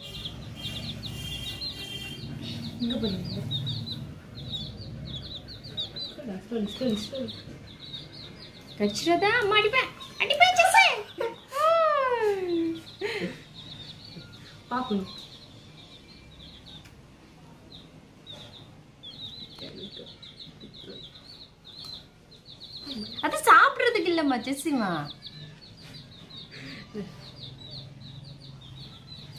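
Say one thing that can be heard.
Chicks peep rapidly and high-pitched nearby.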